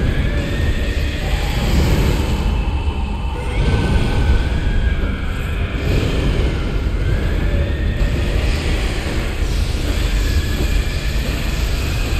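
A huge beast growls and roars.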